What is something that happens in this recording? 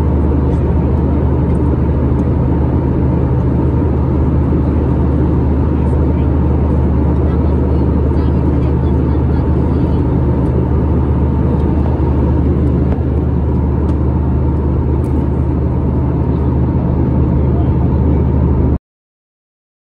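A jet engine roars steadily from close by.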